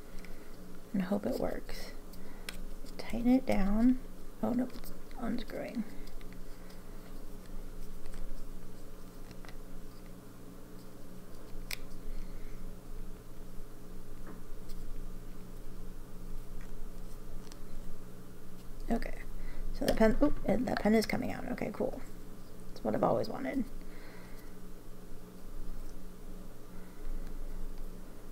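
A pen's plastic parts click and scrape softly as they are twisted.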